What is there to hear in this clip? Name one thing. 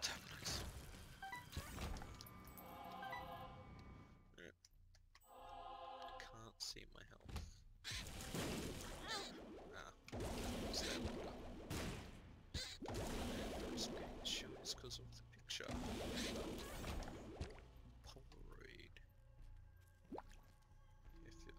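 Game sound effects of squelching shots and bursts play in quick succession.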